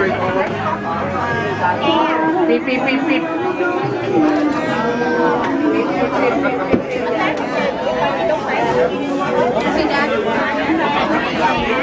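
A large crowd of men and women chatters loudly all around in an echoing room.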